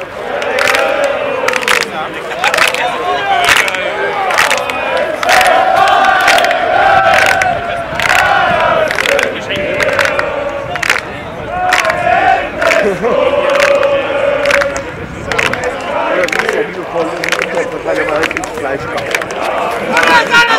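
A large crowd of men chants and sings loudly outdoors.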